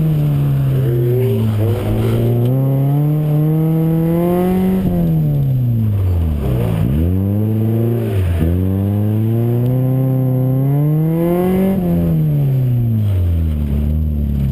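Tyres screech on the road as a car drifts.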